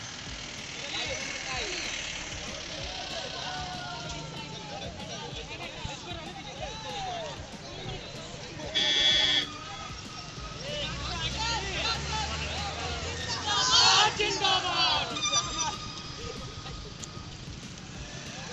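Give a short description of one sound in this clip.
A crowd of men and women chant and shout slogans outdoors.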